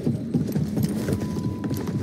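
Feet thud and scrape against a wooden wall.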